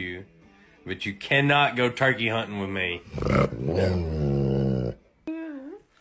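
A young man laughs close by.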